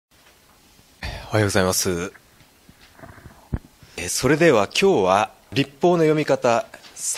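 A middle-aged man speaks calmly into a microphone, lecturing.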